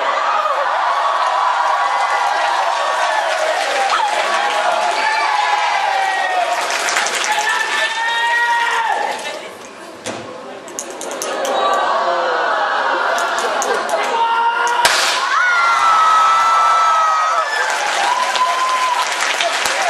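A group of young men and women sing and chant loudly together.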